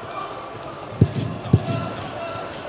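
Kicks thud against a fighter's body.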